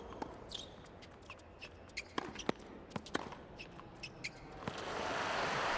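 Tennis rackets hit a ball back and forth with sharp pops.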